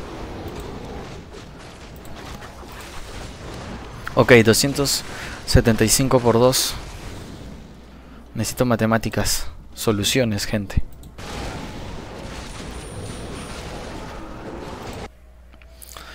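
Game battle sounds clash and rumble in the background.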